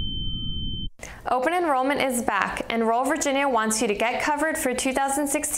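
A young woman speaks clearly like a presenter.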